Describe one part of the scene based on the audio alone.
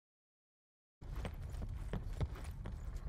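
Boots crunch over gravel and wooden boards.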